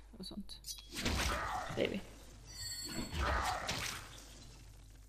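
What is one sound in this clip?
Blades clash and strike in a brief fight.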